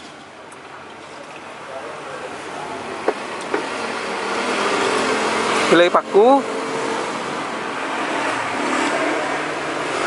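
Soup splashes as it is ladled onto a plate.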